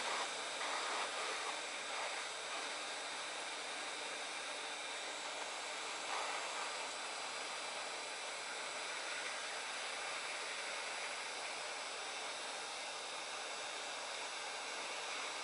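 A hot air gun blows with a steady hiss.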